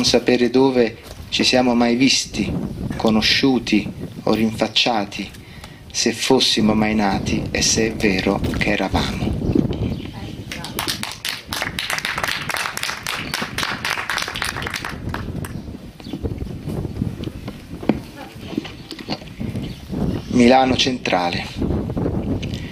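A man reads aloud calmly into a microphone outdoors.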